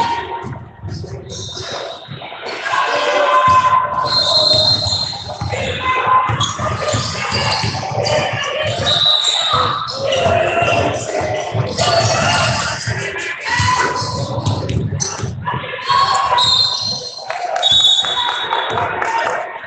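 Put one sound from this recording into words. Spectators and players shout and cheer in an echoing gym.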